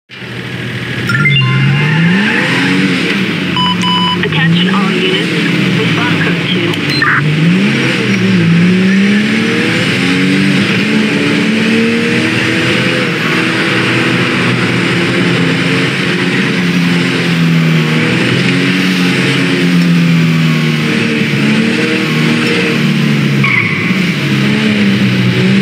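A car engine roars and revs up and down as it speeds along.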